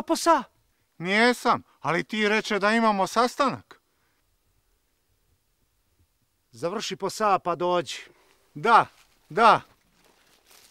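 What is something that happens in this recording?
A bearded man speaks with animation outdoors.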